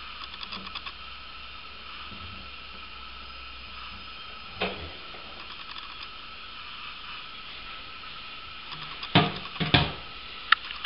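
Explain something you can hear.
A hand taps and rattles a small metal valve.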